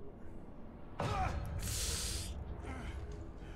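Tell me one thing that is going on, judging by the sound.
A man cries out in fright close by.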